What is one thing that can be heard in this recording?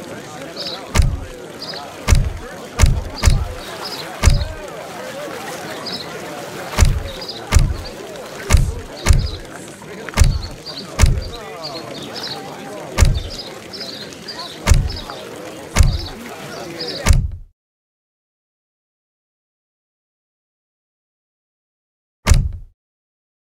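Game menu buttons give short, deep clicks, one after another.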